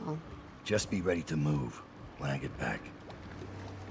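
A young woman speaks calmly, heard close.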